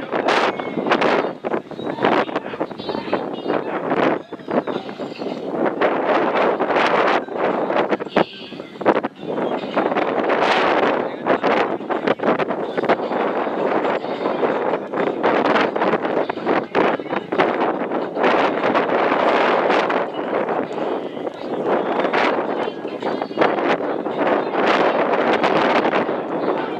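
Strong wind gusts and roars outdoors.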